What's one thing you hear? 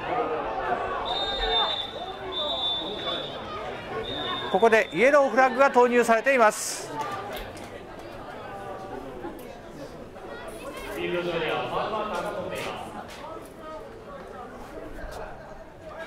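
A crowd of young men shouts and cheers in the distance outdoors.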